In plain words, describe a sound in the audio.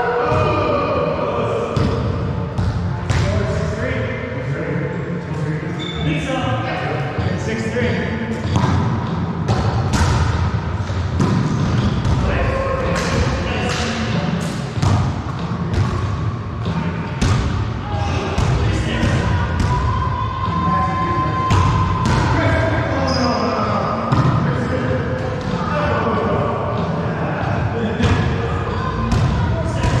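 A volleyball is struck with hollow slaps that echo around a hard-walled room.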